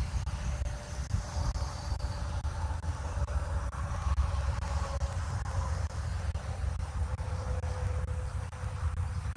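Wind buffets a microphone outdoors with a steady low rumble.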